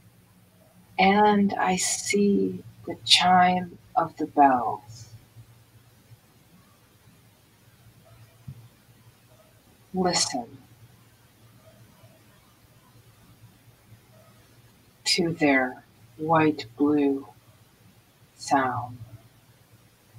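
A woman speaks through an online call, in short bursts with pauses.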